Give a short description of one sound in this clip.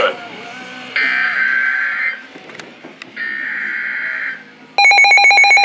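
A handheld radio sounds a steady high alert tone.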